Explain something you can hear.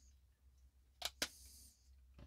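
A small plastic cover clicks into place.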